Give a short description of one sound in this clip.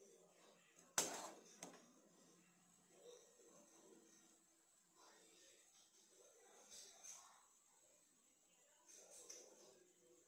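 A metal skimmer clinks against a steel bowl.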